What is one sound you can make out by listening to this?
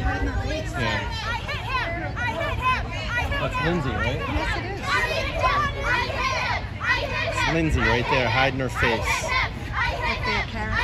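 A crowd of men and women chants and shouts loudly outdoors.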